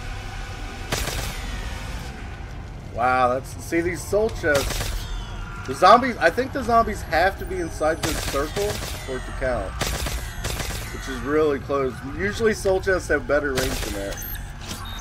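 Gunfire and zapping blasts ring out from a game.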